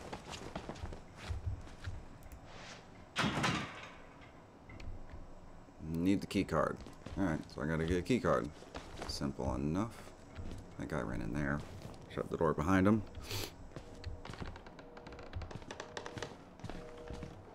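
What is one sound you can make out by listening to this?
Footsteps walk along a hard floor.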